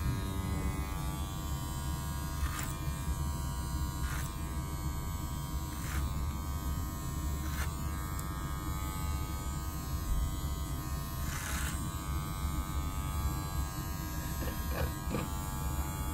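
Electric hair clippers buzz steadily close by.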